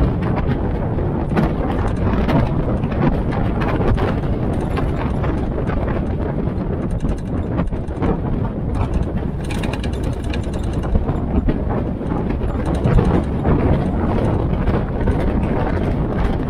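A military jeep drives along with its engine humming.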